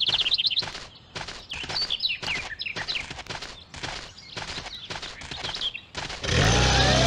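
Quick, light footsteps patter in a steady rhythm.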